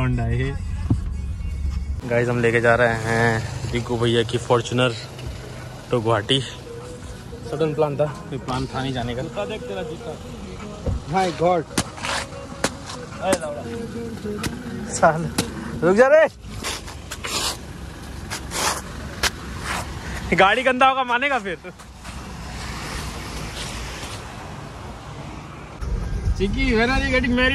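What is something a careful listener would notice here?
A car engine hums inside a vehicle.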